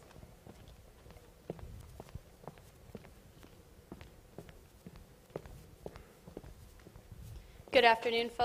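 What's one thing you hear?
Footsteps knock on a wooden stage floor in a large hall.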